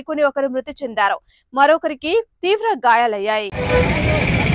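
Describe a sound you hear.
A woman speaks calmly and clearly into a microphone.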